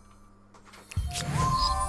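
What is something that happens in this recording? A short musical chime sounds and swells loudly at the end.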